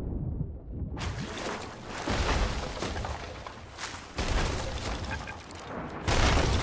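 Water splashes and waves wash loudly as a swimmer breaks the surface.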